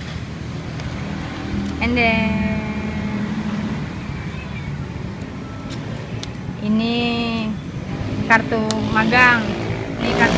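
Plastic cards click and clatter against each other.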